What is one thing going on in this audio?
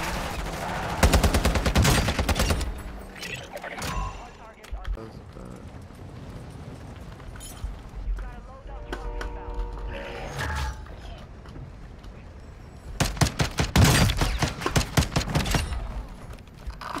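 Rapid bursts of gunfire crack loudly.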